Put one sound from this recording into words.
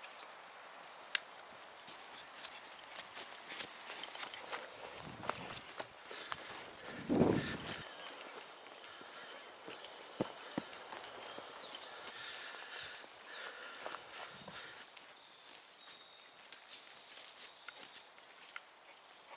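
Footsteps crunch on the forest floor.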